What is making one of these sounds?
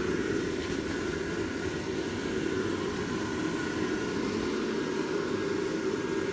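An electric air blower hums and roars steadily nearby.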